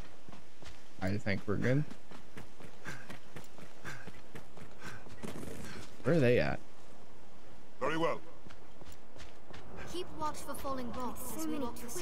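A young man talks close to a headset microphone.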